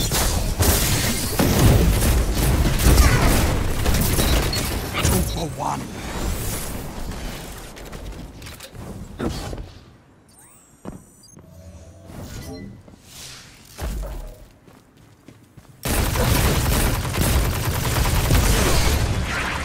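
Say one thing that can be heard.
Gunfire and blasts crackle loudly from a video game.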